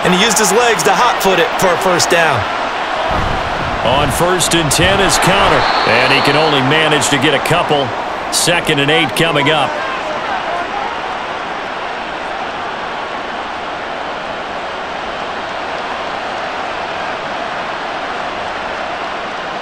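A large crowd roars steadily in a big open stadium.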